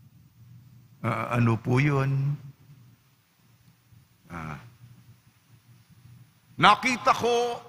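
An elderly man speaks slowly and with feeling into a microphone, in a room with some echo.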